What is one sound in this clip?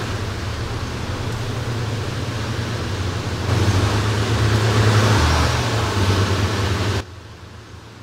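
A bus engine rumbles loudly as the bus drives.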